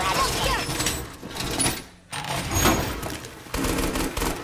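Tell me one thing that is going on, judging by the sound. A metal barricade clanks and scrapes into place against a wall.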